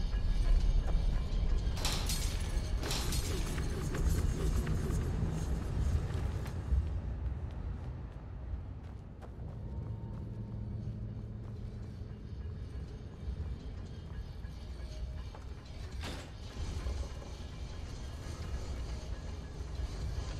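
A low rumbling drone hums steadily.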